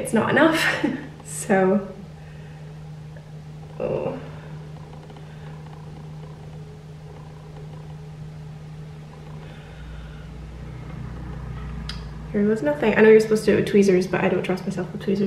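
A young woman talks calmly and close by, with pauses.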